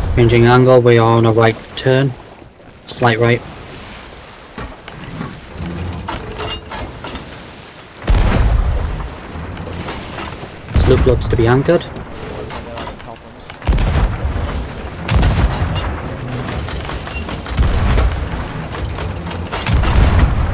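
Waves surge and splash against a wooden ship.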